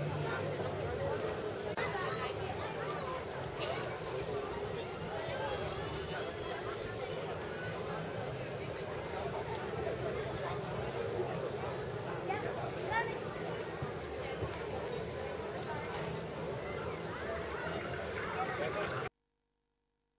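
A crowd of men and women chatter and talk outdoors nearby.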